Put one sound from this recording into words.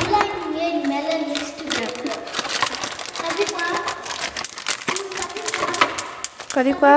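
A foil packet crinkles as it is pulled open.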